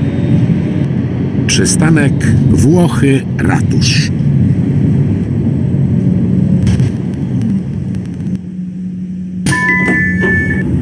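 A tram's electric motor hums as the tram slows to a stop.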